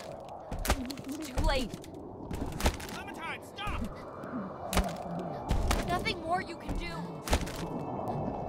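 Ice cracks and splinters.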